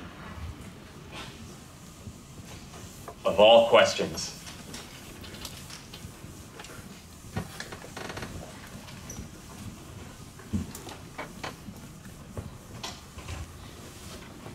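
A felt eraser rubs and swishes across a chalkboard.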